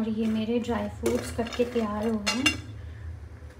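Nut pieces clatter lightly against a metal plate.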